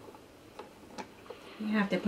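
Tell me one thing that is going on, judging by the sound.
A baby taps the keys of a plastic toy keyboard.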